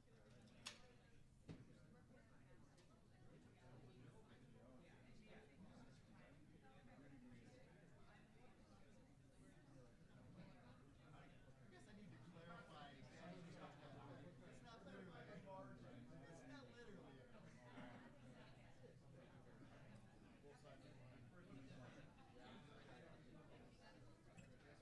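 Many people murmur and chat at once in a room.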